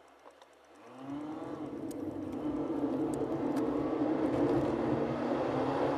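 A car engine revs up as the car pulls away.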